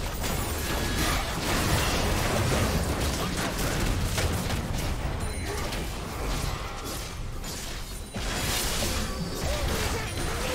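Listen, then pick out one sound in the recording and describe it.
Spell effects whoosh and burst in a fast game battle.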